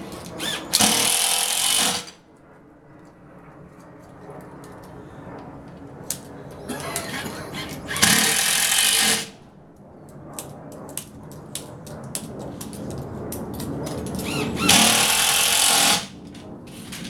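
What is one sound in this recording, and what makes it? A small power tool whirs loudly in short bursts.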